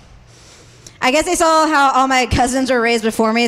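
A young woman speaks animatedly into a microphone, heard through loudspeakers.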